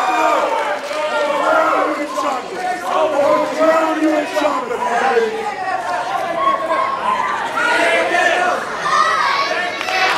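A man shouts loudly in a large echoing hall.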